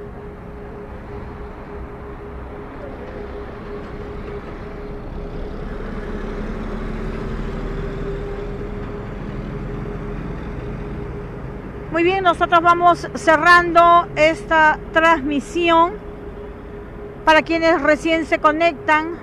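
Traffic hums steadily along a road outdoors.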